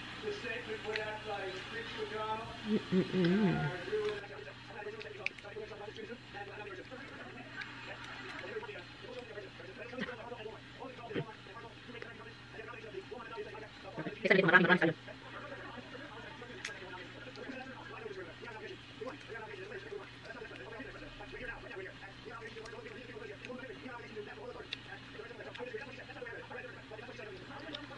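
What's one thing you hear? A young woman chews food noisily.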